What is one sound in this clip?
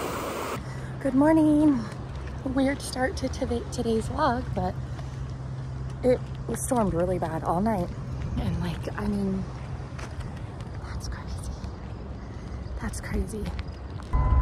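A young woman talks with animation close to a microphone, outdoors in wind.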